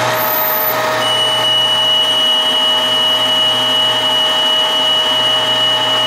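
A cutting tool shaves metal on a spinning lathe with a high whine.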